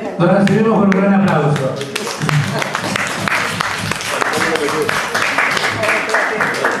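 An elderly man sings into a microphone through loudspeakers in a room with some echo.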